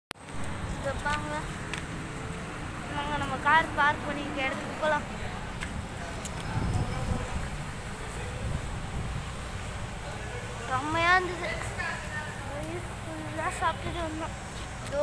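A teenage boy talks calmly, close to the microphone.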